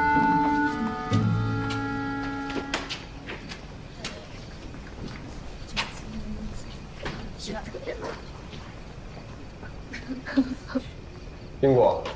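Footsteps tap on a hard floor as several people walk.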